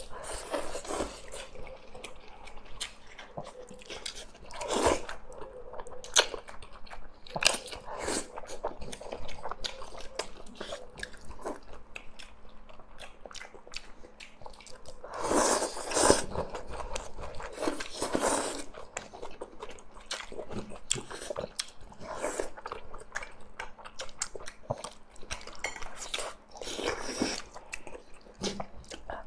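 A young woman slurps noodles and chews loudly close to a microphone.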